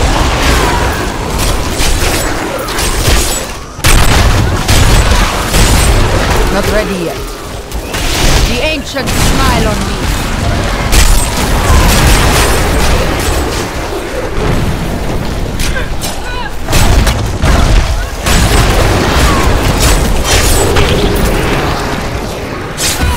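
Game spells crackle and boom in rapid bursts.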